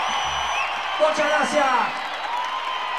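Voices in the crowd shout and whoop loudly.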